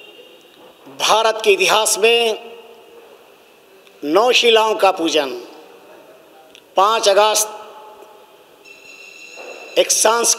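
An elderly man speaks calmly into microphones, in short phrases with pauses.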